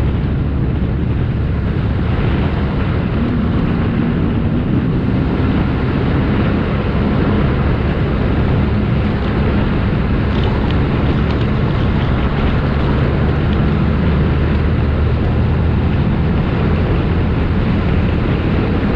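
Wind buffets loudly throughout.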